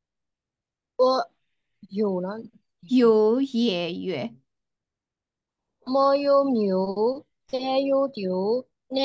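A young woman speaks slowly and clearly over an online call, sounding out syllables.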